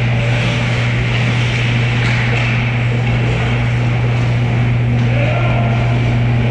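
A loud steady hum fills a large echoing rink.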